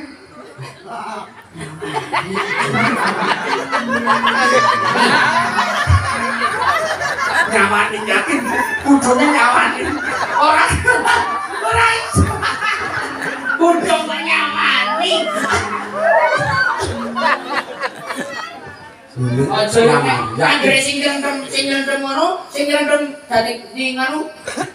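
A young man sings into a microphone, heard through a loudspeaker.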